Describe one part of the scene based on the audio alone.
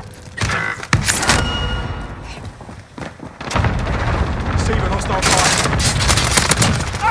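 Gunfire rattles in short, loud bursts.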